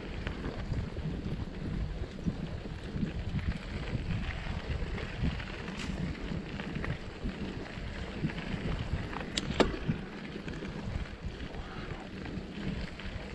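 Wind buffets past, close and rushing.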